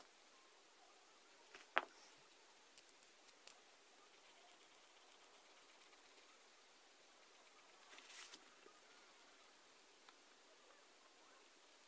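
A pen scratches softly on paper.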